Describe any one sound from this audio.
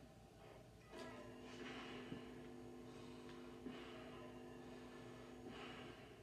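A low steady hum drones from a television speaker.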